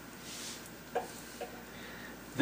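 Metal parts clink softly as a heavy part is handled.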